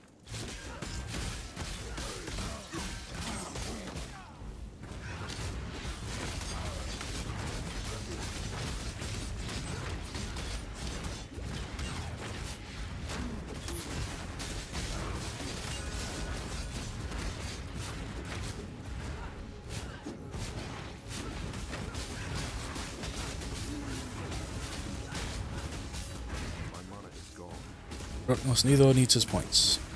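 Game spells and weapons clash, with bursts and impacts.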